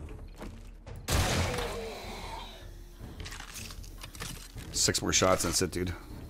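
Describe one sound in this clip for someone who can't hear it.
Metal clicks and clacks as a rifle is reloaded.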